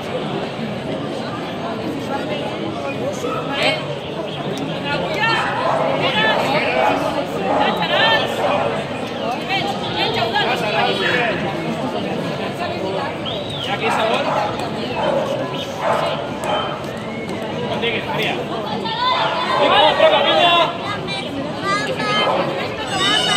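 A young woman shouts encouragement up close.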